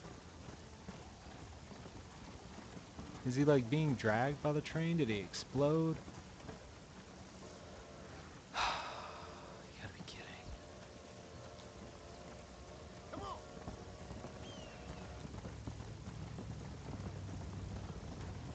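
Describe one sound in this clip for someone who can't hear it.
A horse gallops with hooves thudding on dry ground.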